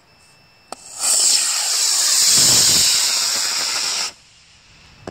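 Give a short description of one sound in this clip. A model rocket launches with a loud roaring whoosh.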